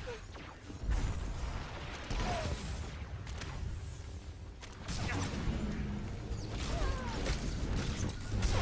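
Energy blasts crackle and burst.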